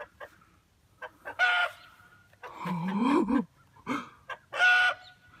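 Chickens cluck and squawk nearby.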